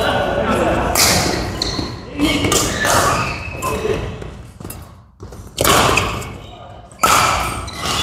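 Shuttlecocks are struck sharply by rackets in an echoing hall.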